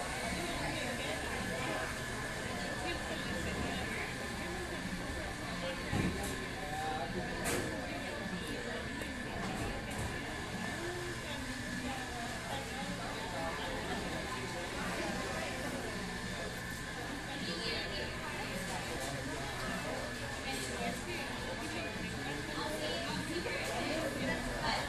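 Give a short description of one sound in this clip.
Many people murmur and chatter in a busy room.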